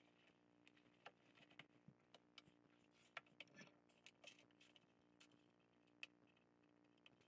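Metal bits clink and rattle against each other.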